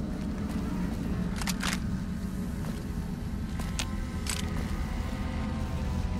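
Objects clink and rattle as they are picked up.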